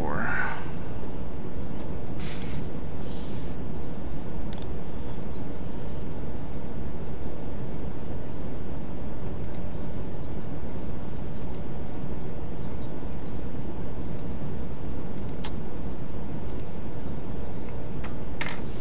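Sea waves wash and churn with a low, steady rumble.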